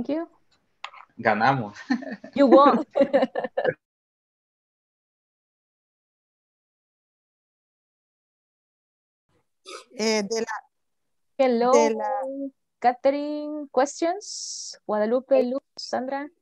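A young woman speaks animatedly over an online call.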